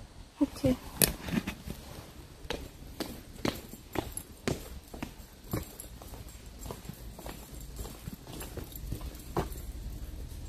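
Footsteps tread on stone steps at a steady pace.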